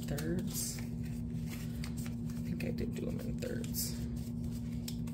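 Paper banknotes rustle and crinkle as they are counted by hand.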